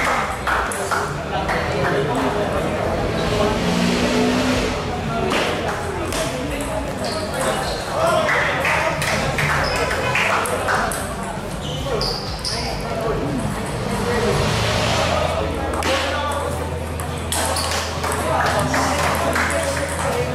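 A table tennis ball clicks back and forth across a table and paddles.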